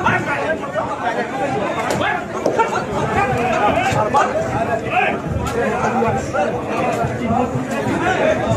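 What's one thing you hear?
A crowd of men shout angrily over one another in a scuffle.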